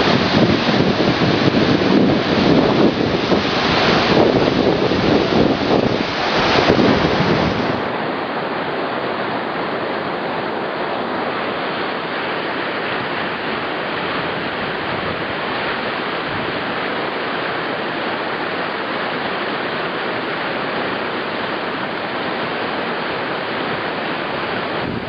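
Whitewater rapids roar loudly and steadily outdoors.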